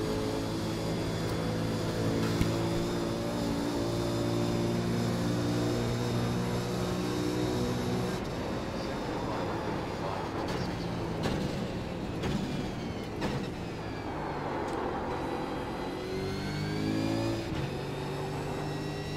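A racing car engine roars steadily, dropping and rising in pitch through gear changes.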